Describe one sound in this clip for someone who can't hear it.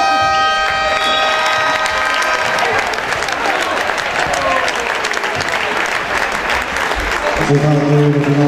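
A crowd cheers and applauds in a large echoing hall.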